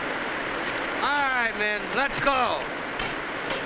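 A man cries out in a wavering, wailing voice.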